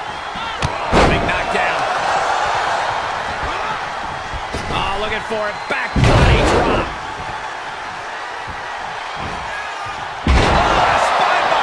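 Heavy thuds ring out as bodies slam onto a wrestling mat.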